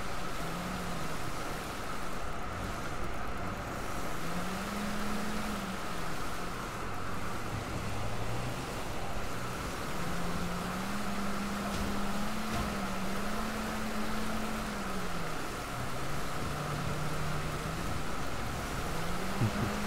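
A motorboat engine drones steadily, rising and falling in pitch.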